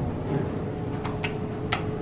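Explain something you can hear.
A finger clicks a floor button inside an elevator.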